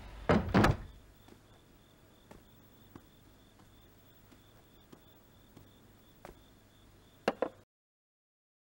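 Footsteps tread softly across a wooden floor.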